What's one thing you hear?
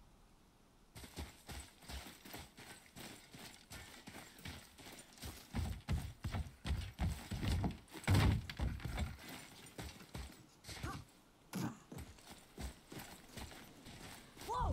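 Heavy footsteps thud on dirt and wooden planks at a running pace.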